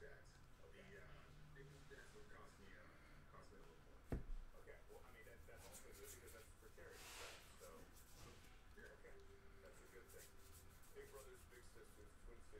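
Trading cards rustle and slide as they are flipped through.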